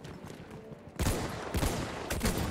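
Gunfire cracks loudly.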